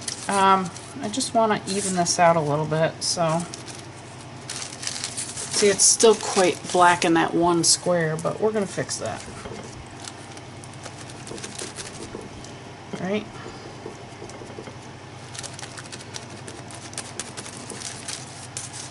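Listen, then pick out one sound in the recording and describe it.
A foam dauber dabs softly on paper.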